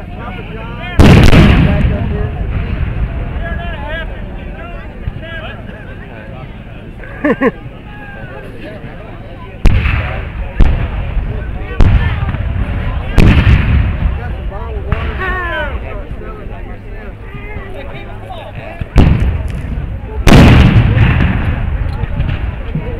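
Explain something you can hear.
Cannons fire in loud booms that roll and echo across open ground.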